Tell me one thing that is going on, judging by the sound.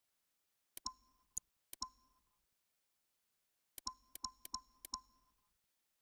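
Short menu clicks tick as options are scrolled.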